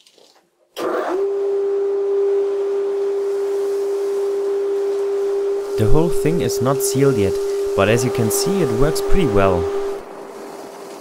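A vacuum hose sucks up wood shavings with a steady droning hum.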